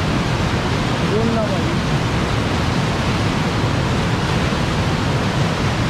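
A fast river rushes and roars loudly over rocks.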